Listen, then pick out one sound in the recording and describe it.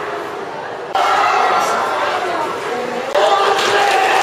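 A crowd chatters and murmurs in a busy, echoing hall.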